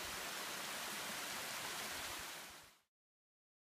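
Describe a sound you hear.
A small stream of water splashes steadily down over rocks.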